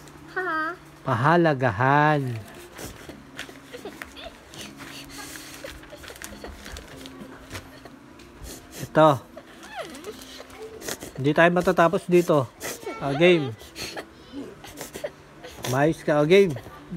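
A young child speaks close by in a lively, sing-song voice.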